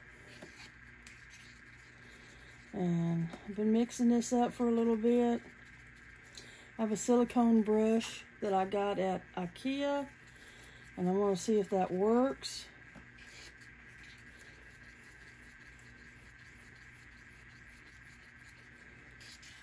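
A wooden stick scrapes softly as it stirs inside a paper cup.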